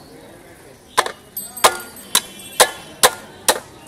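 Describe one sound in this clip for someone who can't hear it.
A blade chops through fish bone in sharp blows.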